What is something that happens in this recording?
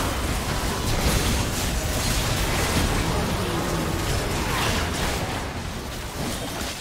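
Game spell effects and weapon hits crash and burst rapidly in a busy battle.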